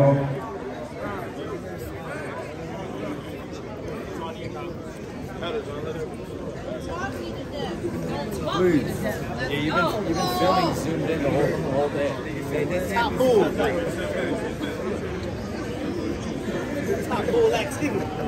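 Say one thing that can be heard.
A man speaks loudly and animatedly close by.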